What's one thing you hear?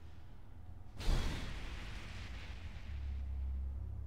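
A video game plays a loud, sudden whoosh that quickly fades.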